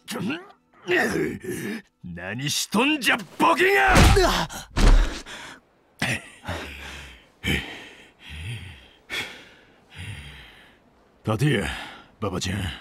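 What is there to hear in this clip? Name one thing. A man shouts angrily and close by.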